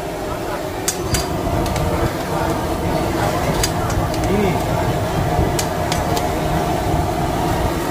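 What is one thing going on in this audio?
A metal ladle clinks against a pot.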